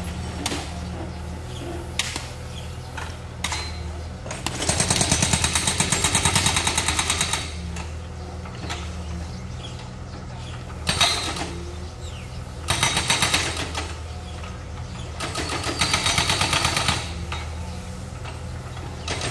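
A diesel wheeled excavator engine runs.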